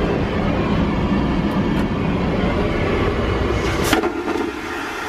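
A toilet flushes with a loud, sudden whoosh.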